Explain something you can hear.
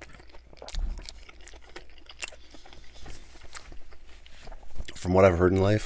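A man chews crunchy food loudly close to a microphone.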